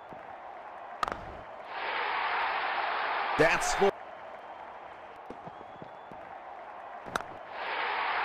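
A cricket bat cracks sharply against a ball.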